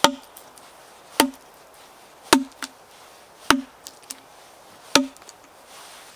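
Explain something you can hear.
A metal tool taps sharply on wood several times.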